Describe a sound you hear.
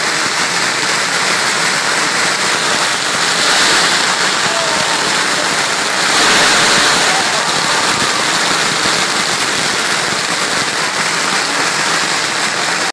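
Fireworks hiss and crackle, spraying sparks.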